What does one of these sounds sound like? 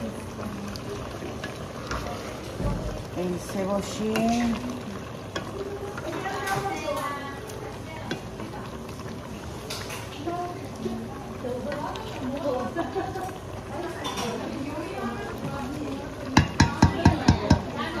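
A wooden spoon stirs and scrapes through a thick stew in a metal pot.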